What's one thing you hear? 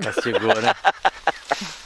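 An elderly man laughs heartily close by.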